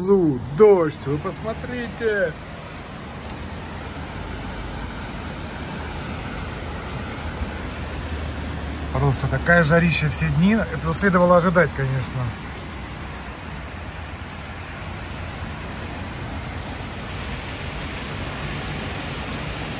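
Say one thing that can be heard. Heavy rain pours down steadily outside.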